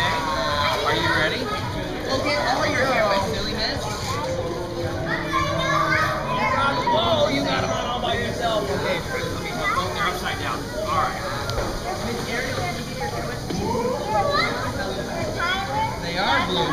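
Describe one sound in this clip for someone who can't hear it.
Young children chatter and shout with high voices, echoing in a large indoor pool hall.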